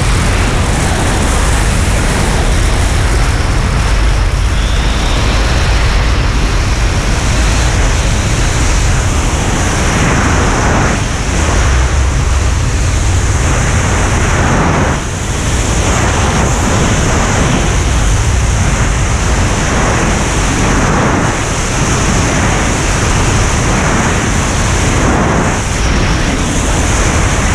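Strong wind roars loudly and steadily past the microphone during freefall.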